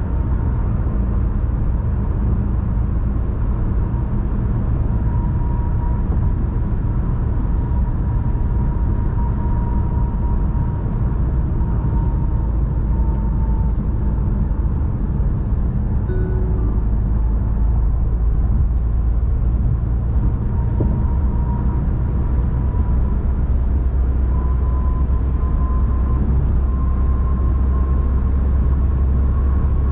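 Wind rushes against a moving car.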